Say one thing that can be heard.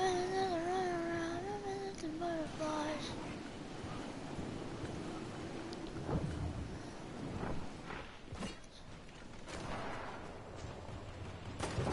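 Wind rushes past a glider descending through the air.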